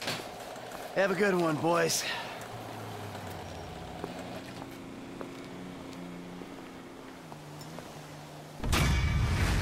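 Footsteps fall on pavement.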